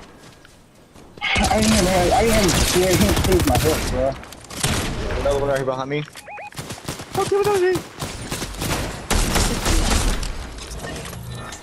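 Guns fire in rapid bursts of sharp shots.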